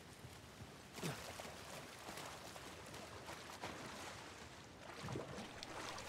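Water splashes as a character wades and swims.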